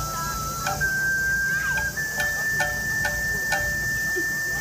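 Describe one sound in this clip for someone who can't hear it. Sharp percussion beats sound in a steady rhythm.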